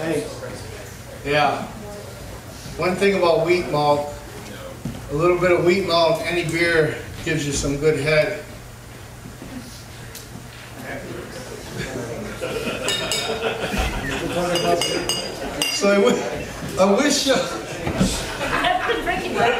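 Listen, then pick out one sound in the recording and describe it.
A middle-aged man talks calmly through a microphone.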